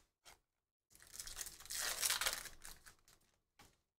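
Playing cards rustle and slide against each other as they are shuffled.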